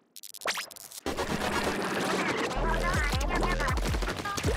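Splashy game sound effects burst.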